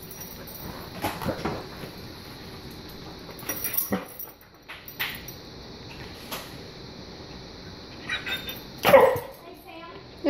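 A dog's claws scrabble against a wall.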